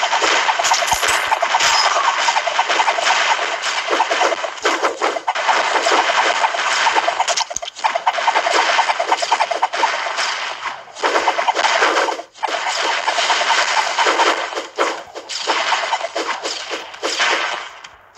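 Mobile game sound effects of shots and hits crackle rapidly.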